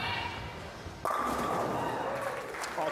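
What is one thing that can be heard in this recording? Bowling pins crash and clatter loudly.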